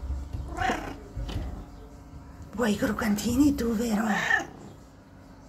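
A cat meows loudly close by.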